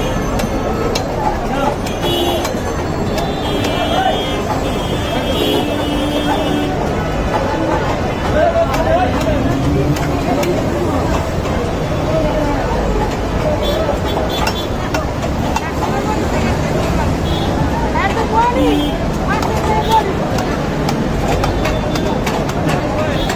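A blade slices wetly through fish flesh.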